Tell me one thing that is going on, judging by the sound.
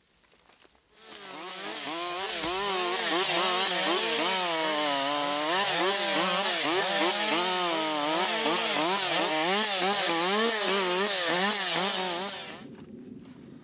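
A chainsaw roars steadily while cutting through wood.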